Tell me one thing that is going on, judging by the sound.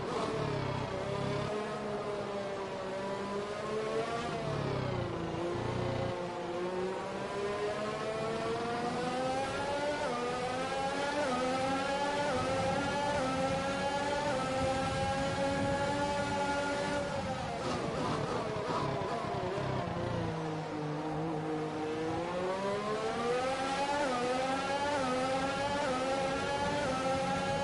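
A racing car engine whines loudly, rising and falling in pitch as it shifts gears.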